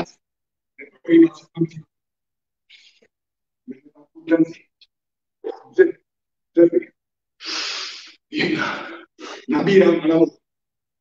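A man speaks breathlessly, close to the microphone.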